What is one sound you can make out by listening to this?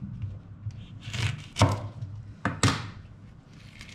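A knife cuts through a lemon on a wooden board.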